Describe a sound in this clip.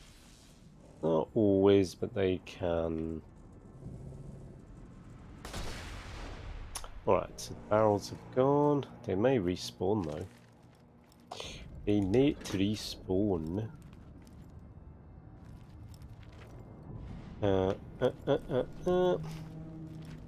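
A middle-aged man talks calmly into a close microphone, in short bursts.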